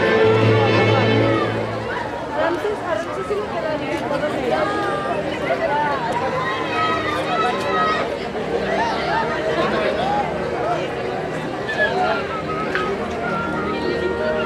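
A crowd of men and women chatter and call out all around, outdoors.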